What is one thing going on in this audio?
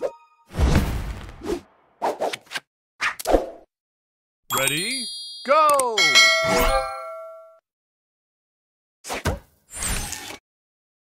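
Bright electronic chimes and swooshes play in short bursts.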